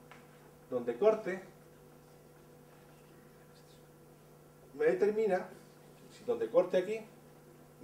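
An older man speaks calmly in short phrases, lecturing.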